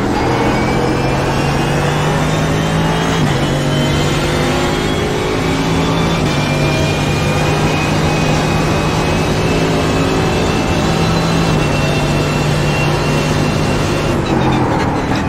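A racing car engine roars and climbs in pitch through the gears.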